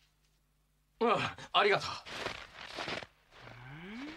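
A young man speaks hesitantly.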